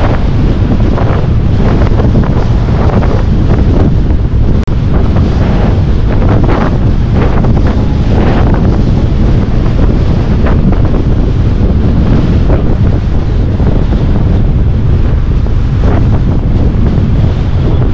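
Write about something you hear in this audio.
Strong wind rushes and buffets past, loud and steady.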